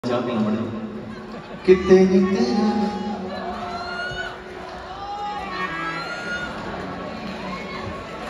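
Musicians play instruments through loudspeakers.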